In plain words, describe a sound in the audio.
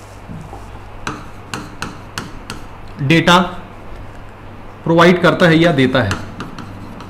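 A pen taps against a board while writing.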